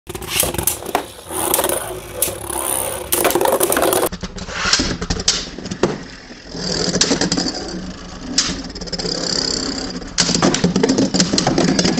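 Spinning tops whir and scrape across a plastic arena.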